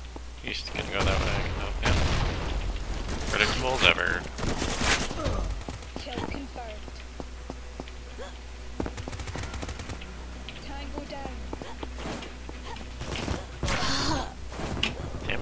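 A shotgun fires loud, booming shots.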